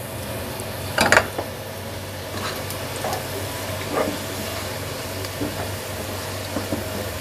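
A spatula scrapes and knocks against a pot.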